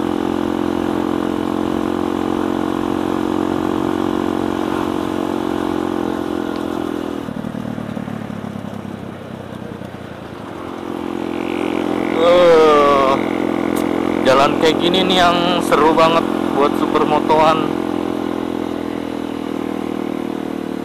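A motorcycle engine hums steadily up close, dropping briefly before picking up again.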